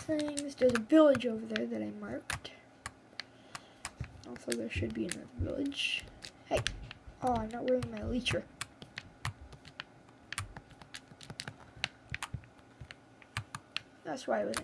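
A finger taps and clicks lightly on a touchscreen.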